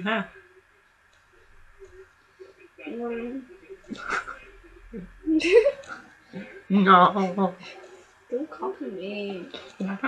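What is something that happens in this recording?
A young man talks casually and laughs, close to a webcam microphone.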